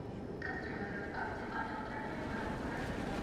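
A man talks into a microphone close by.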